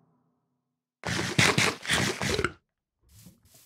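Loud crunching chews of eating come in quick bursts.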